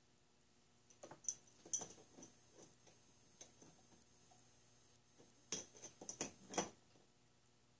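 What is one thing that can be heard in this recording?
Small metal parts click and tap as they are handled.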